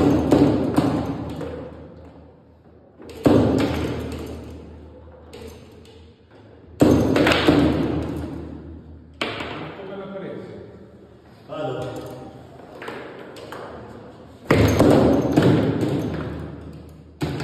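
Metal rods clatter and thump as players spin and slide them.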